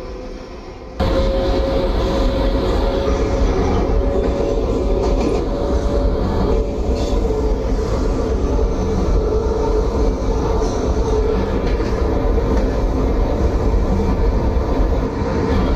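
A subway train rumbles loudly along the tracks with a steady roar.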